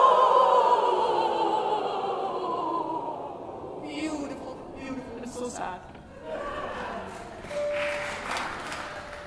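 A performer speaks through a microphone in a large echoing hall.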